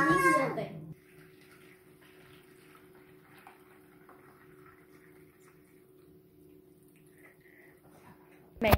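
Hot water pours from a kettle and splashes into a plastic bowl.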